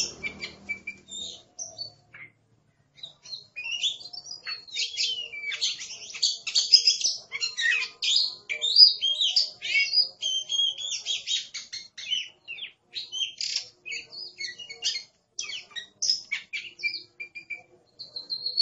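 A songbird sings a varied, warbling song of whistles and trills close by.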